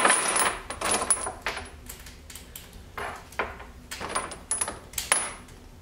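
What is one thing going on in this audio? Small metal parts click and clatter on a wooden counter.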